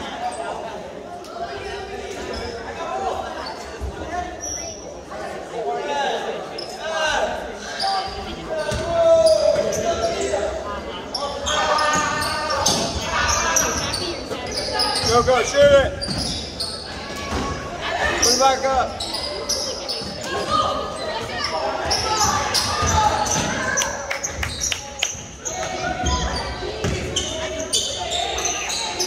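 Spectators and players chatter and shout in an echoing gym.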